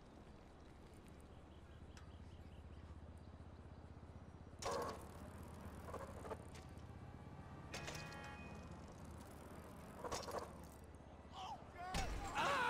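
Bicycle tyres roll steadily over a wooden ramp.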